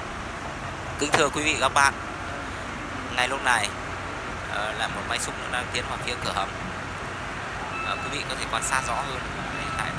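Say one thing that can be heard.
Nearby women talk with animation.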